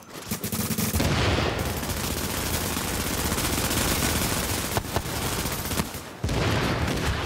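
Rifles fire.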